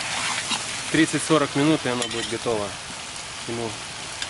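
A metal spatula scrapes against an iron pot.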